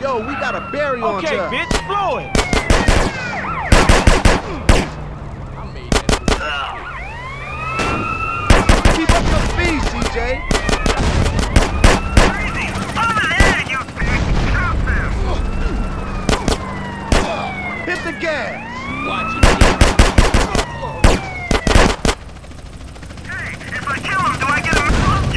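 Police sirens wail and sweep up and down.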